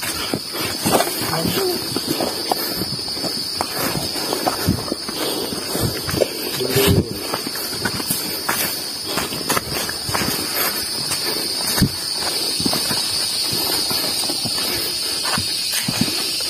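Footsteps crunch and rustle on a leafy forest trail.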